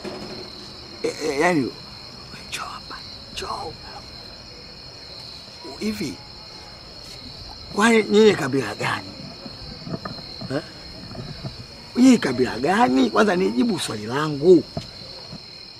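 A man speaks loudly and with emotion, close by.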